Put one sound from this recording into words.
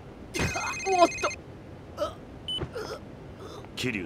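A body thuds heavily onto the ground.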